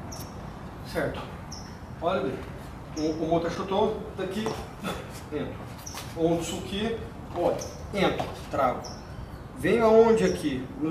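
A man speaks calmly nearby, explaining.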